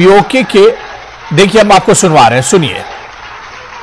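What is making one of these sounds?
A crowd of men chants slogans loudly.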